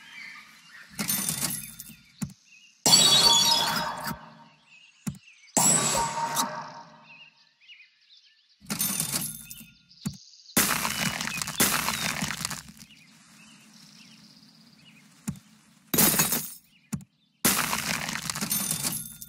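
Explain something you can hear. Short game sound effects swoosh and chime in bursts.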